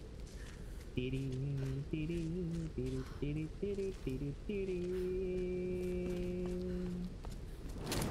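A young man speaks close to a microphone.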